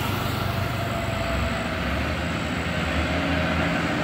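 A motorcycle engine hums as it passes.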